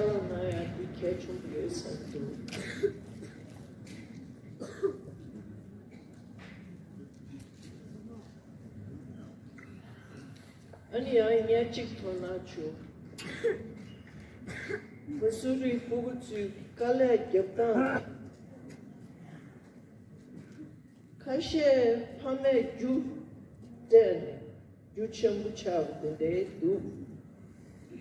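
An elderly woman speaks slowly into a microphone through loudspeakers, in a large echoing hall.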